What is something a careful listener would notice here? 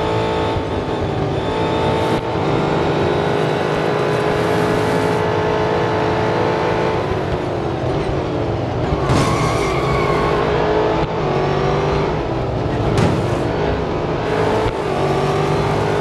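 Racing car engines roar at high speed.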